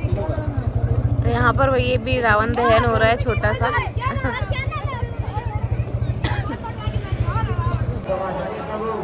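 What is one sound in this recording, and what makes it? Children shout and chatter nearby.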